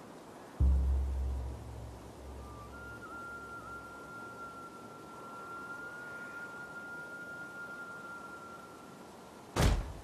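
Rain falls on a rough open sea.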